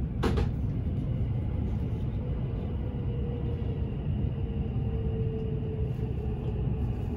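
A train rumbles steadily along the tracks, with a low hum inside the carriage.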